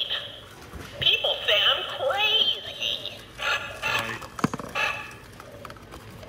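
A toy bird chirps and tweets close by.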